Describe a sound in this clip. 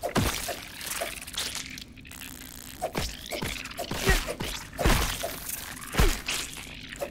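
A spear strikes a giant ant with dull thuds.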